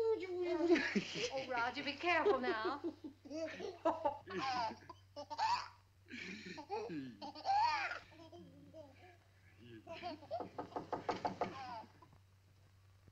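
A man laughs up close.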